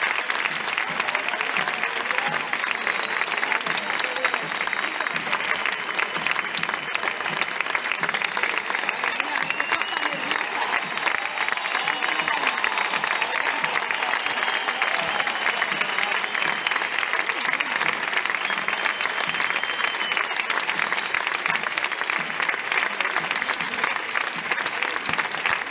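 Dolçainas play a bright, reedy melody.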